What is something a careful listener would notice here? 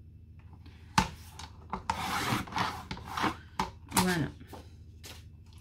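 A paper trimmer blade slides and slices through card.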